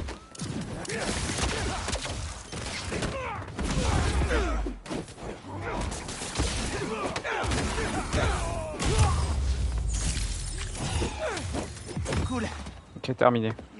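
Punches and kicks land with heavy thuds during a brawl.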